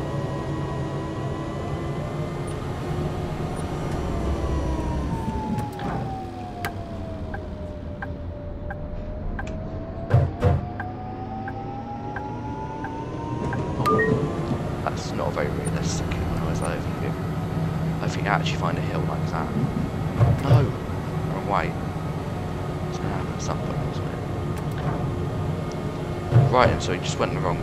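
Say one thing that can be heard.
A tram's electric motor whines, dropping in pitch as the tram slows and rising again as it speeds up.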